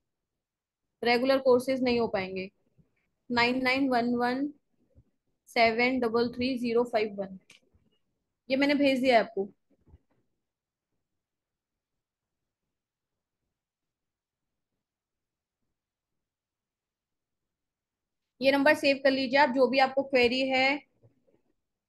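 A woman speaks calmly through a microphone over an online call, in short bursts with pauses.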